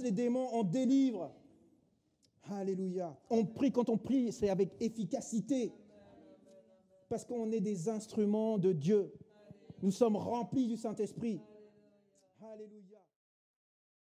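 A middle-aged man speaks calmly and earnestly through a microphone.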